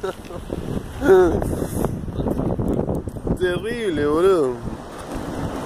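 A young man speaks nearby, outdoors in wind.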